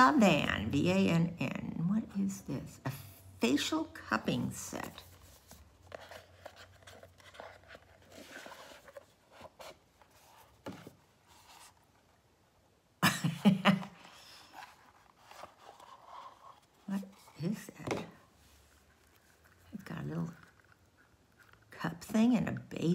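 An elderly woman speaks calmly and close by.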